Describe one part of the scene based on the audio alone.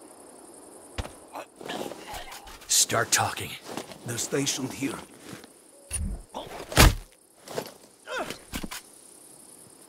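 Bodies scuffle and thud heavily on gravel.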